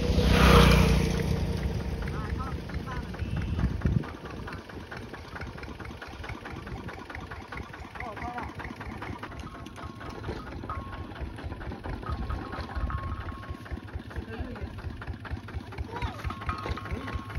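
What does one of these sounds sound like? A small tractor engine chugs with a fast, steady putter nearby.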